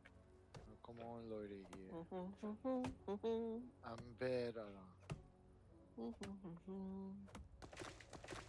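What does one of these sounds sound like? An axe chops into a tree trunk with sharp knocks.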